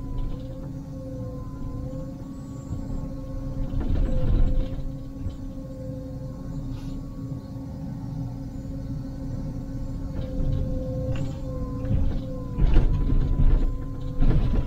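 A diesel excavator engine hums steadily from inside the cab.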